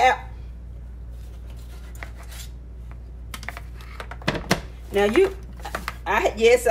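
A hand scoops and presses flour with soft rustling.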